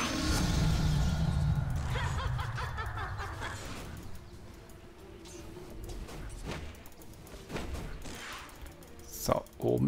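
Magic spells whoosh and crackle as fantasy fighters clash.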